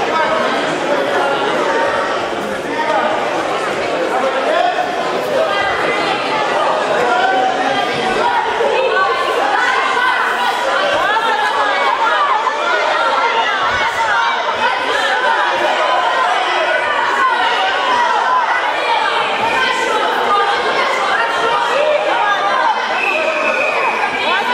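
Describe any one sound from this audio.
A crowd of adults and children chatters and shouts in a large echoing hall.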